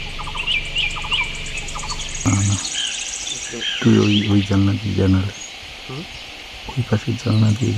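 Birds chirp and call in the open air.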